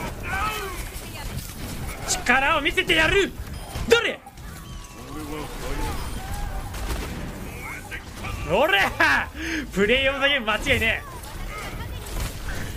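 Gunfire bursts from a video game.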